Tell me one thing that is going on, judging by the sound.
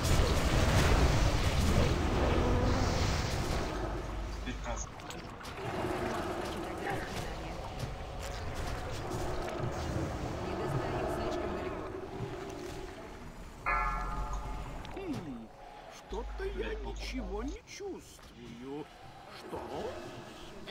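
Game spell effects whoosh and crackle during a battle.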